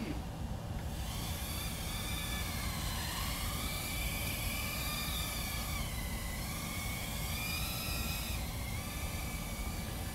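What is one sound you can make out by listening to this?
A small drone's propellers whine, rising and falling in pitch as it flies.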